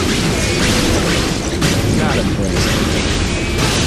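Energy blasts crash and explode.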